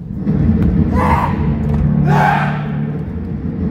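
Young men shout sharply in a large echoing hall.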